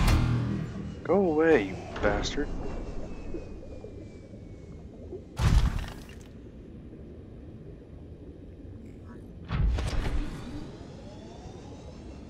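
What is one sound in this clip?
A small submarine's motor hums and whooshes underwater.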